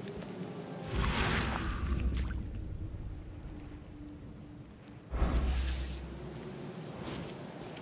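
A deep whooshing rumble swells and fades.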